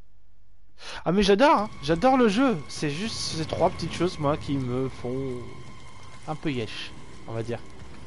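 A young man talks with animation into a headset microphone, close by.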